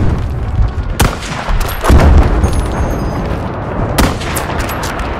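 A rifle fires sharp single shots.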